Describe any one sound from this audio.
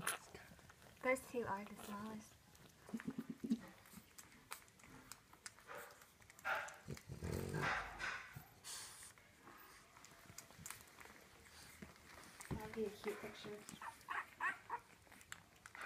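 Newborn puppies squeak and whimper softly close by.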